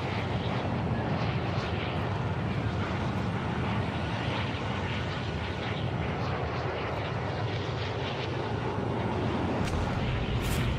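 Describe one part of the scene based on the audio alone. A large plane's engines drone steadily.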